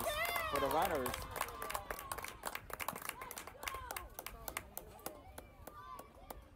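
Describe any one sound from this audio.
Hands clap in quick high-fives.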